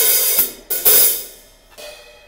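A drum kit crashes loudly.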